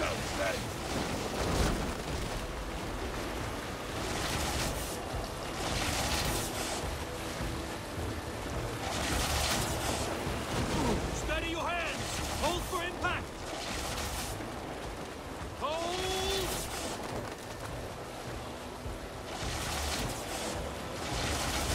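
Waves wash steadily against a wooden boat.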